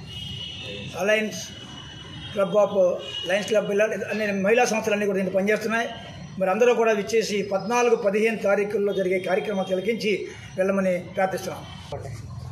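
An elderly man speaks calmly and firmly, close by.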